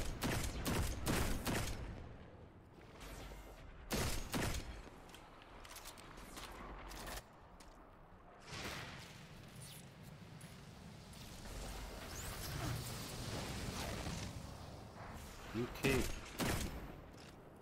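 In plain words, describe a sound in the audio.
A rifle fires rapid loud shots.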